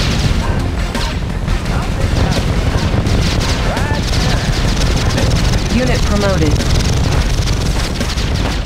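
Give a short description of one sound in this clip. Guns fire in rapid bursts during a battle.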